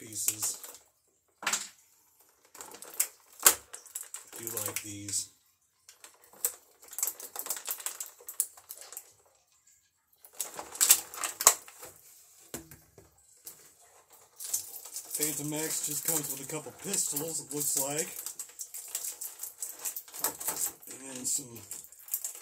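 A plastic bottle crinkles and crackles in a man's hands.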